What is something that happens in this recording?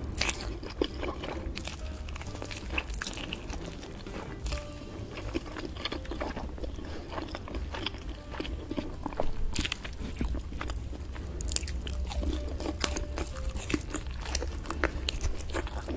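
Someone chews crunchy meat loudly and wetly close to a microphone.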